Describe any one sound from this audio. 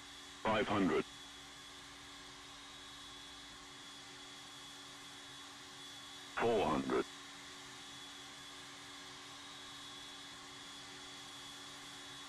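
A small plane's engine drones steadily in the distance.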